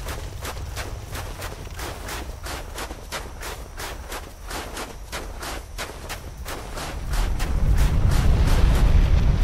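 Armoured footsteps thud quickly and steadily on stone.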